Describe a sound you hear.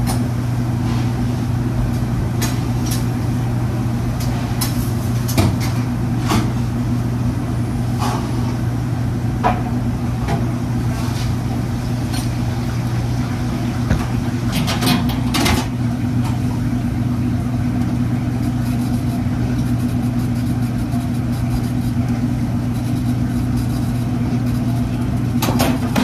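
An exhaust fan hums steadily.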